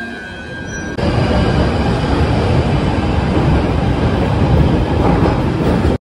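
A subway train pulls away and rumbles loudly, echoing in the station.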